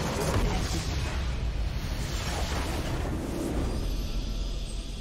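A game's structure explodes with a loud crumbling blast.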